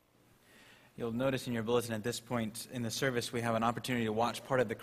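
A man speaks clearly into a microphone in a large echoing hall.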